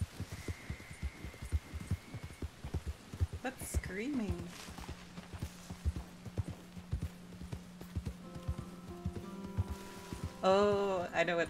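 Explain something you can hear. Horse hooves thud steadily on soft ground.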